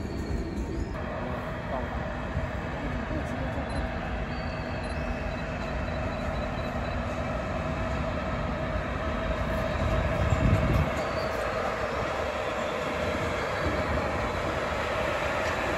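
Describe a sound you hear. A locomotive hums as it slowly approaches.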